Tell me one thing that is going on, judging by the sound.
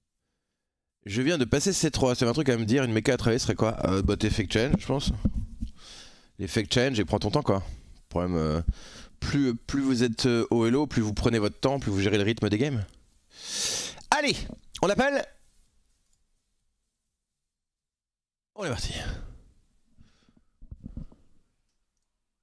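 A man talks with animation, close to a microphone.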